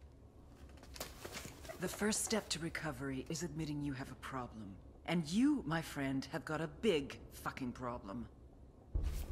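A woman speaks in a low, menacing voice close by.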